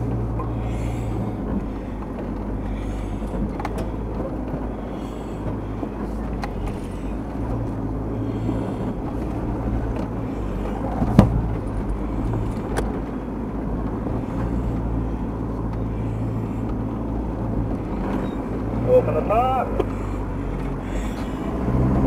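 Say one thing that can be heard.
Stones and gravel crunch and knock under tyres.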